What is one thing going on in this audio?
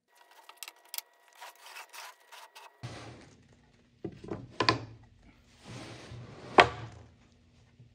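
Wooden boards knock and thud as they are fitted together.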